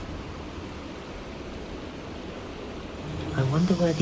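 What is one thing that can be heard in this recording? Steam hisses from leaking pipes.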